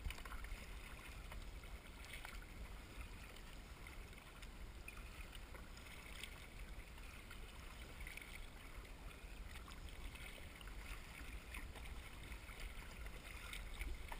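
Water splashes and laps against a kayak's hull.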